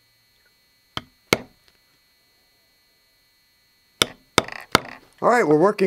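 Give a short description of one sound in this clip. A mallet taps sharply on a metal stamping tool.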